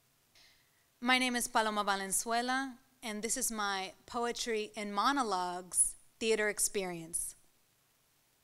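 A young woman recites expressively into a microphone.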